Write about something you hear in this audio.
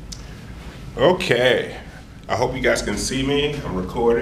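A man speaks close by, calmly and clearly.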